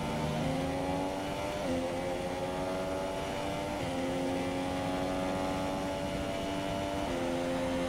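A racing car engine screams at high revs, rising in pitch and dropping sharply with each gear change.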